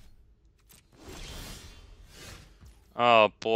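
A game chime sounds as a turn begins.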